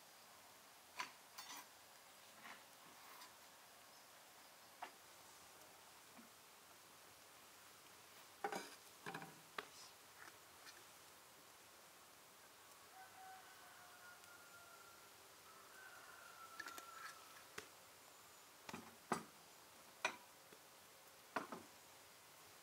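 Dishes and utensils knock and clink.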